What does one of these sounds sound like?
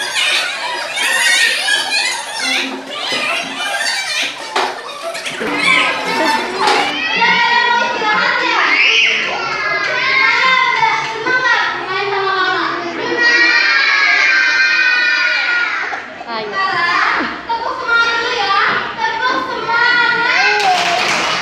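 A young woman speaks loudly to a group of children.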